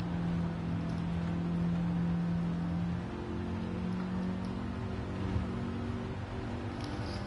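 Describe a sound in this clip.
A car engine hums steadily and shifts pitch as the car speeds along.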